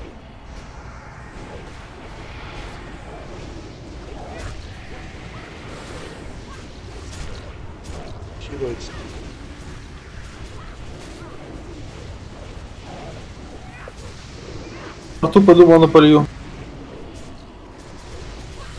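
Magic spells whoosh and crackle in a video game battle.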